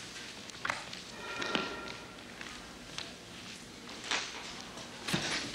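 Footsteps knock slowly on a wooden floor in a large echoing hall.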